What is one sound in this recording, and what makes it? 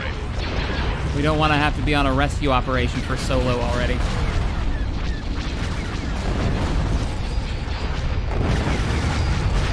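Laser blasts zap in quick bursts.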